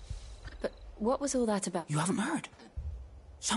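A young man answers in a low, serious voice.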